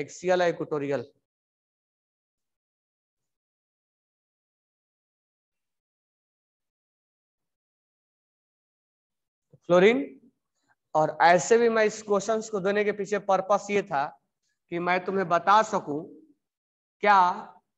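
A man lectures in a raised, explaining voice, close by.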